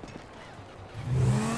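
A motorcycle engine starts and idles with a low rumble.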